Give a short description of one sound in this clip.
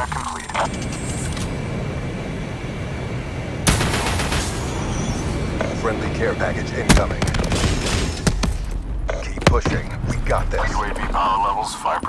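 Heavy blasts rumble one after another.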